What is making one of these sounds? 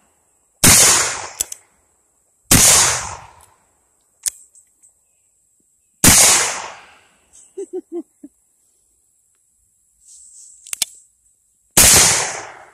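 A revolver fires loud gunshots outdoors, each echoing briefly.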